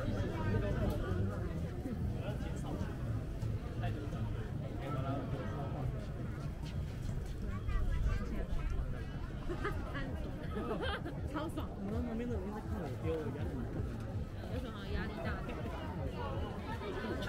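A crowd of men and women chatter all around, outdoors.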